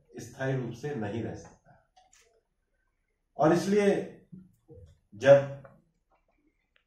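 A middle-aged man speaks calmly into a microphone with pauses between phrases.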